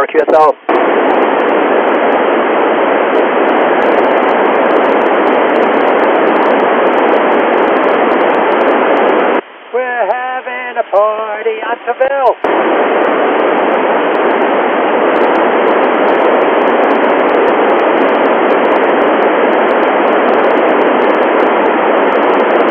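Radio static hisses steadily through a loudspeaker.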